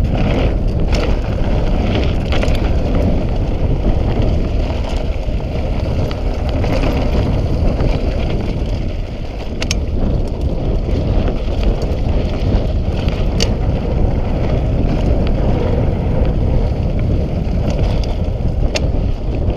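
Wind rumbles loudly past the rider, outdoors.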